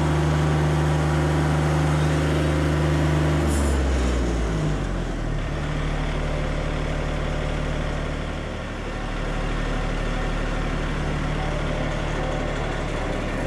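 A sawmill engine runs with a loud, steady drone that drops in pitch partway through.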